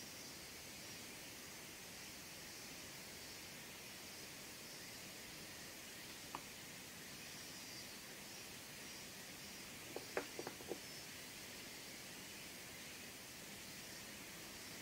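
Pastel rubs and scratches softly across paper.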